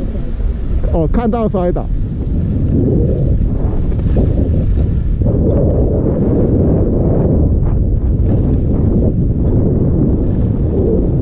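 Skis hiss and swish through deep snow.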